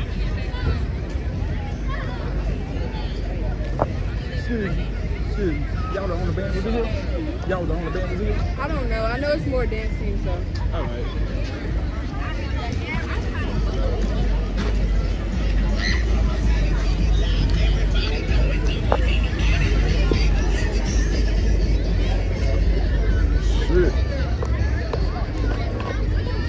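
A crowd of people chatter and call out outdoors along a street.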